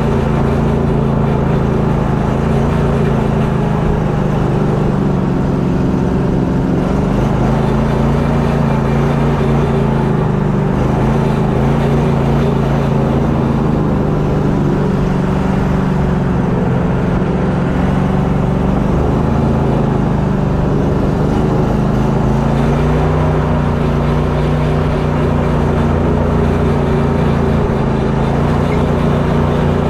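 Water rushes and splashes along a boat's hull.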